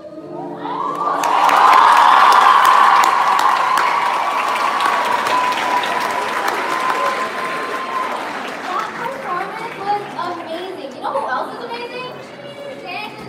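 An audience applauds loudly, then the clapping slowly thins out.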